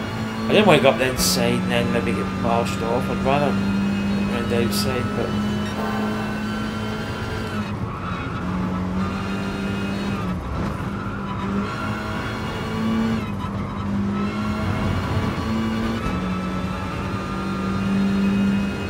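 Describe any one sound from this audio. A race car engine roars steadily at high revs, shifting gears as it speeds up and slows down.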